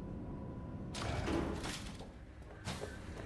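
A metal elevator door slides open with a clatter.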